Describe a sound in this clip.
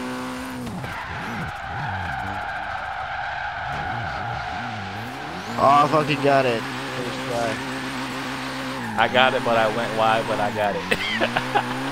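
A car engine revs and roars steadily.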